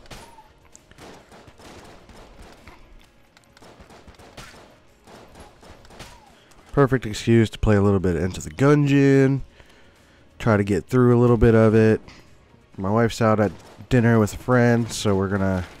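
Small guns fire in quick popping bursts.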